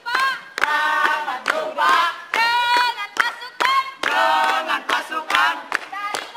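A group of young people sing together outdoors.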